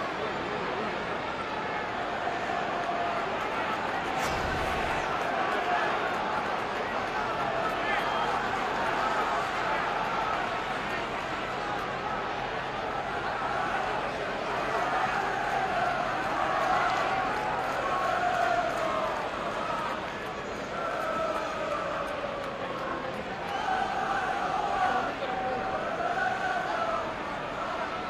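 A stadium crowd murmurs and cheers outdoors.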